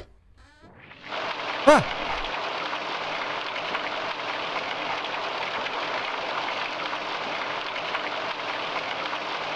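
Steady rain falls and patters.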